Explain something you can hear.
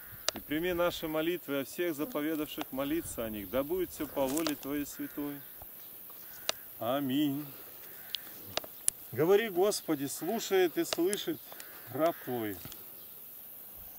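A man calls out loudly in short, rhythmic phrases outdoors.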